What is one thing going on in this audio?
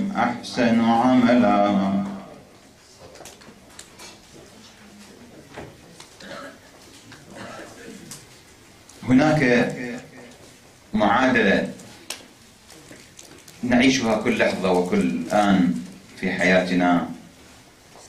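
A man speaks calmly into a microphone, pausing between phrases.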